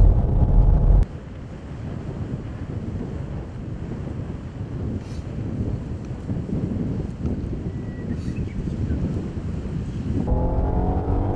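Tyres swish over a wet track at a distance.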